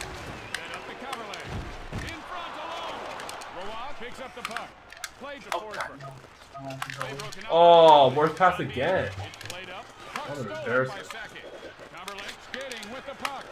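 Hockey sticks click sharply against a puck on ice.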